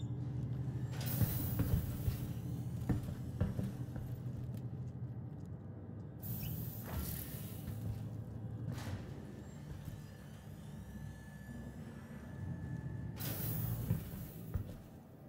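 Sliding doors whoosh open and shut.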